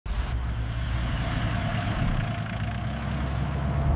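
A van drives past on a road.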